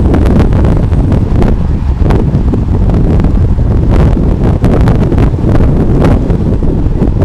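Wind roars loudly past a moving bicycle.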